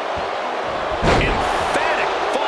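A body slams hard onto a wrestling ring mat with a heavy thud.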